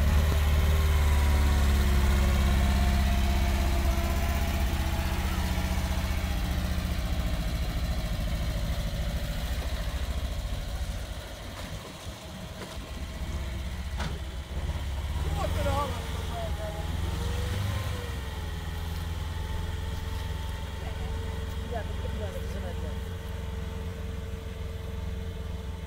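A vehicle engine drones steadily.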